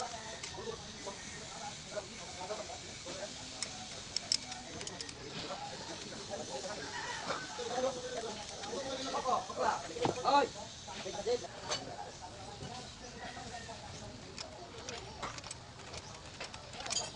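Metal tools clink and scrape against an engine part.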